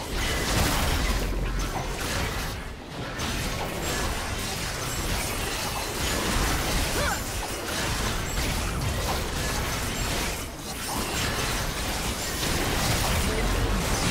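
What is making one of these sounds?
Spell effects crackle and whoosh in a fast game fight.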